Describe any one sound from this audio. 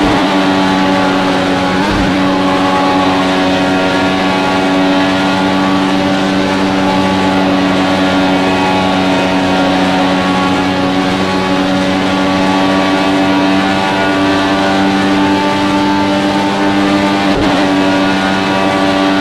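A racing car engine whines steadily at high speed.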